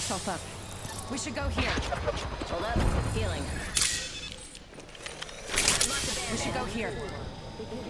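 A healing syringe hisses and clicks.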